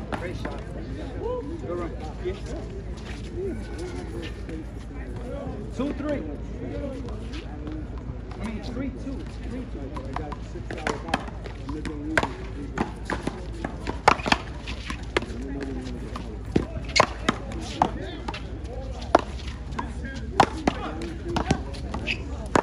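Men and women talk casually nearby.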